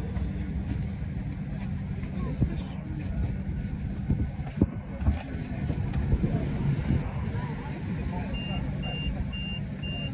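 A vehicle's engine rumbles low and steadily from inside while riding.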